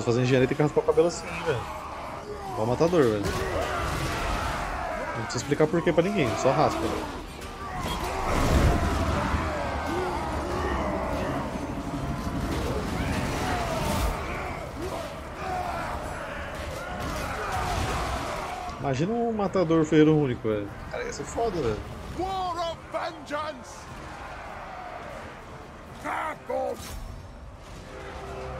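A battle rages with clashing weapons and shouting crowds.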